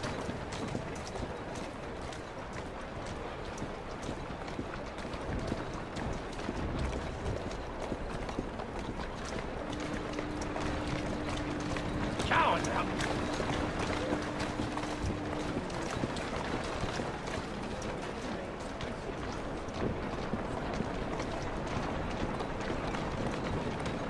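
Footsteps tap steadily on cobblestones.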